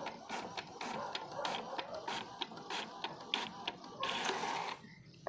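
A printer whirs and clicks rhythmically as a page feeds through.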